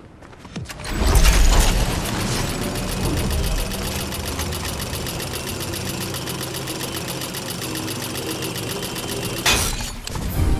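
A cable pulley whirs and rattles steadily along a zipline.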